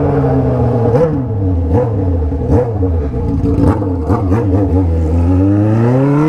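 An inline-four sport motorcycle with a straight-pipe exhaust rumbles at low revs.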